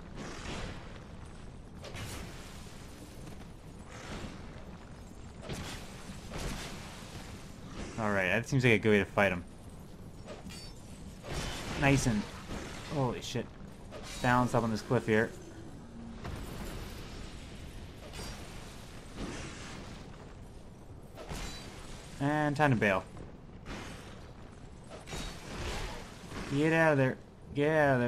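Metal weapons clang and clash in combat.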